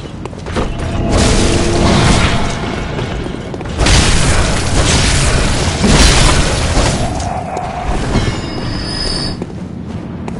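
Blades clash and slash in a fierce fight.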